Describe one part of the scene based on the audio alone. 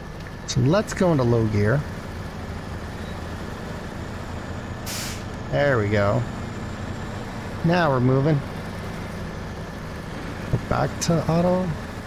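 A heavy truck engine rumbles steadily at low speed.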